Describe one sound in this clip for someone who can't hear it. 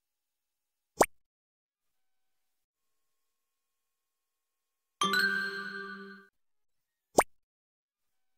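A game gives a quick click.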